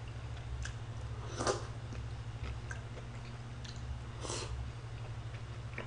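A young man chews and slurps food.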